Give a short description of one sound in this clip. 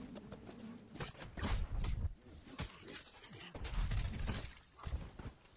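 Electric sparks crackle and fizz loudly.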